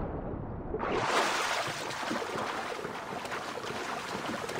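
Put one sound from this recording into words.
A swimmer breaks the surface and splashes through choppy waves.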